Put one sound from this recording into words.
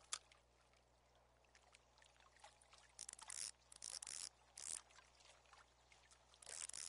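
Water laps gently at a lake shore.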